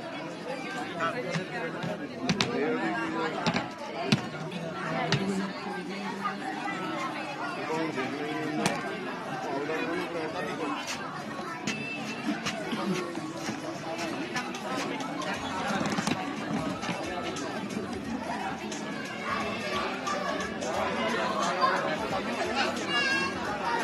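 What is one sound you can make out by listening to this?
Several women and men talk and chatter nearby.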